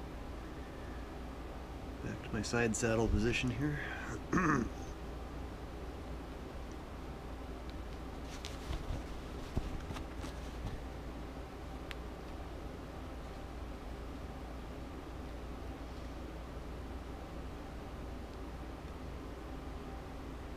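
Fabric rustles softly as thread is pulled through it by hand.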